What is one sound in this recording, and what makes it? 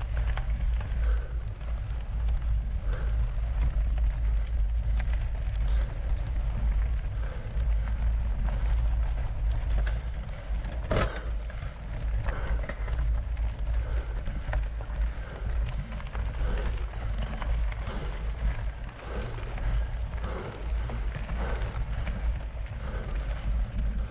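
Bicycle tyres crunch and rattle over a rough dirt trail.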